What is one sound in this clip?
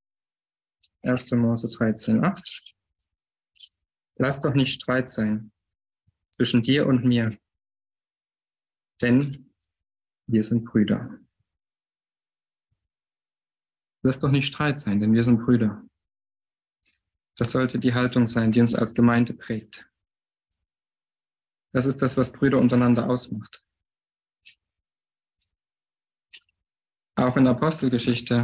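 A man speaks calmly in short phrases, close to a microphone as if on an online call.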